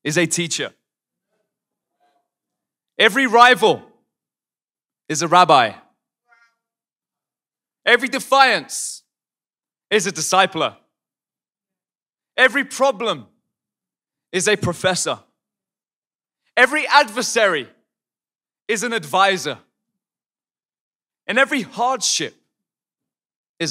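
A young man speaks expressively into a microphone in short phrases, with pauses between them, sometimes shouting.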